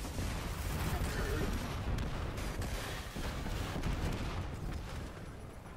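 Explosions boom heavily.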